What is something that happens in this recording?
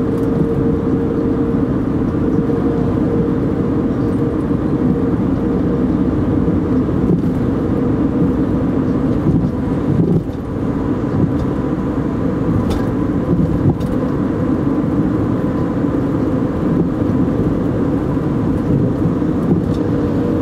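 Tyres and road noise rumble inside a moving car.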